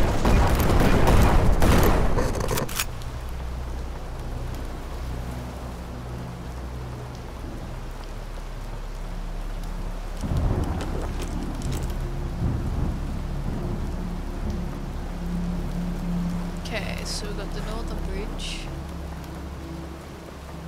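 A young woman talks into a microphone.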